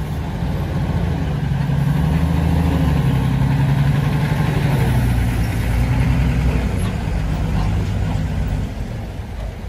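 A loaded truck drives slowly past with a low engine roar.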